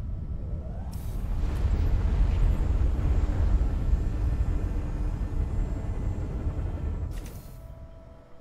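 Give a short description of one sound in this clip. A heavy machine roars and rumbles as it launches upward.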